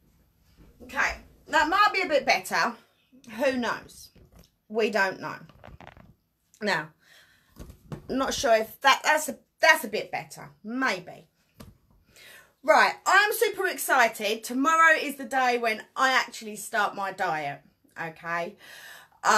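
A woman speaks close to the microphone with animation.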